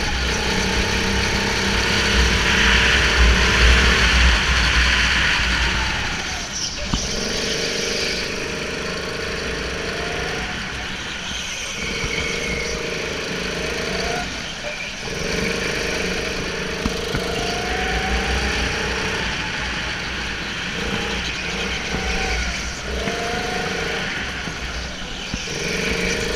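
A go-kart engine buzzes up close, rising and falling in pitch as it speeds up and slows down.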